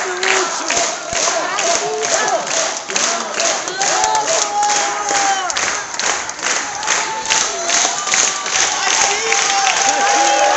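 A crowd claps along in a fast, steady rhythm.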